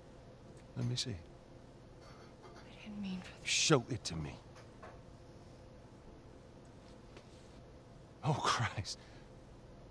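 A man speaks quietly and gruffly.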